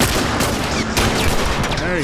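Gunshots bang sharply.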